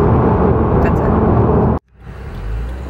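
A young woman talks animatedly close by.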